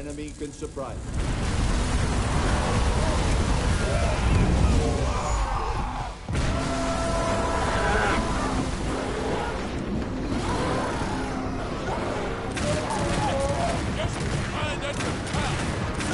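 Explosions roar.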